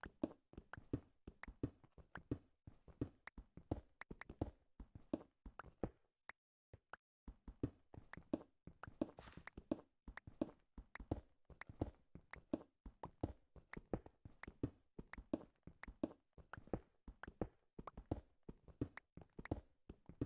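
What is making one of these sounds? A pickaxe chips rapidly at stone in a game, with quick dull knocks.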